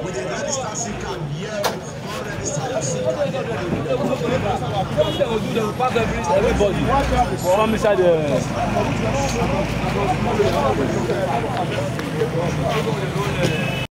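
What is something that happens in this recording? Several men talk loudly and excitedly over one another close by, outdoors.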